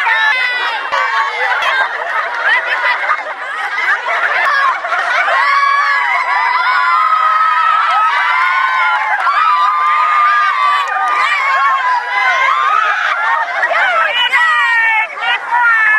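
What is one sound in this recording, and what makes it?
A group of young women laugh and shout with excitement close by.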